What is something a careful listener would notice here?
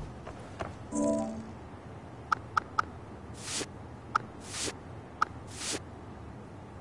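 Short soft clicks and chimes sound as menu options are selected.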